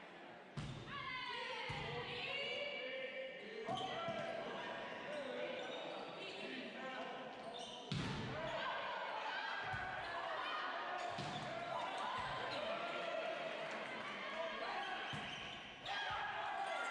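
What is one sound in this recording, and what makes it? A volleyball is struck with sharp thuds that echo around a large hall.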